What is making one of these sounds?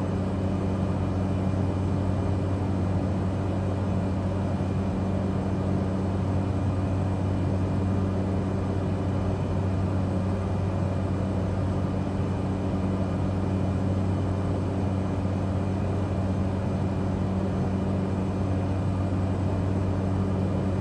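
A propeller aircraft engine drones steadily from inside the cockpit.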